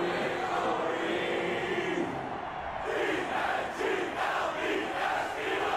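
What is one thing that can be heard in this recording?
A large stadium crowd murmurs and cheers in the distance.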